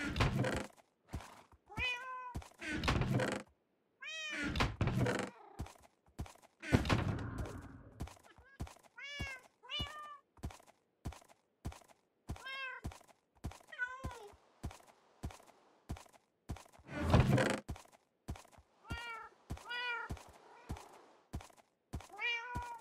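Short soft clicks come in quick succession.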